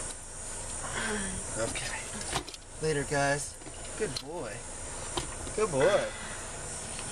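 A man laughs and exclaims close by.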